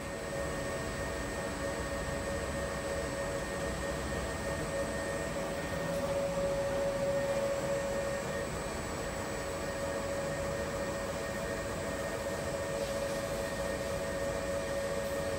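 Laundry tumbles and swishes inside a washing machine drum.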